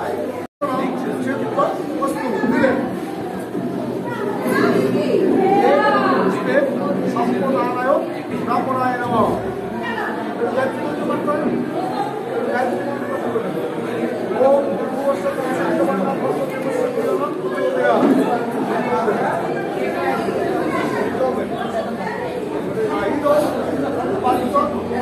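An elderly man reads aloud in a steady chanting voice nearby.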